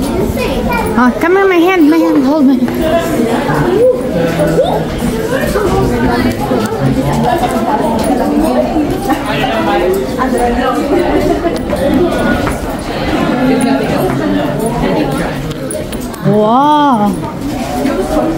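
A young girl speaks in a high voice close by.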